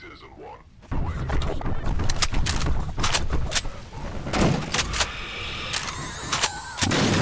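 A submachine gun fires rapid bursts.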